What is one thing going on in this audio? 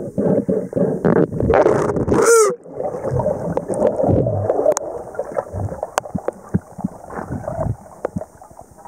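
Air bubbles gurgle and rumble loudly underwater, then fade.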